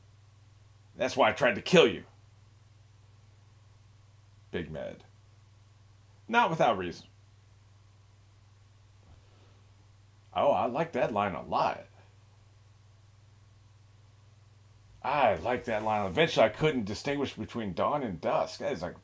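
An older man talks calmly and casually, close to a microphone, with pauses between phrases.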